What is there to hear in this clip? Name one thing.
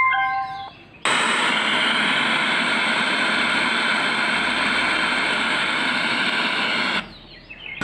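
A portable speaker hisses with loud, steady radio static.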